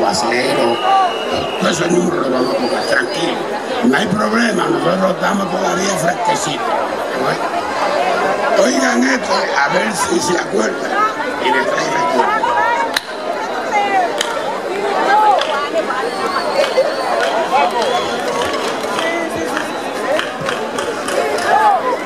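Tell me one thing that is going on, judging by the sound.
An elderly man sings into a microphone through loud outdoor speakers.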